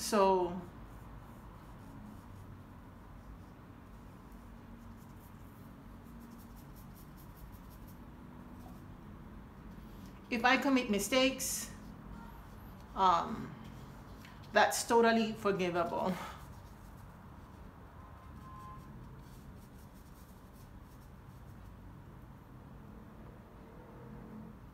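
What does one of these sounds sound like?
A paintbrush swishes softly across paper.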